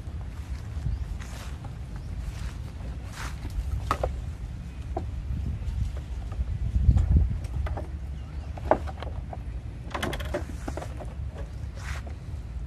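Monkeys tug and rattle at a parked scooter.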